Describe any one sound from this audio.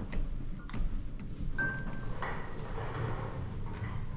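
A finger clicks an elevator button.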